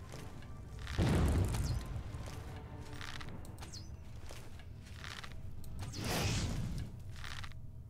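A fire spell bursts with a deep, roaring whoosh.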